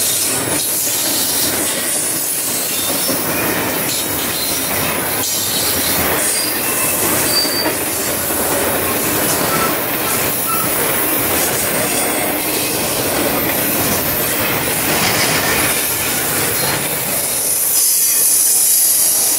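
Freight car wheels clatter over rail joints.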